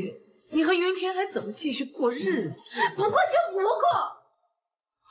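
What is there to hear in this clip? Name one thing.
A middle-aged woman speaks upset and close by.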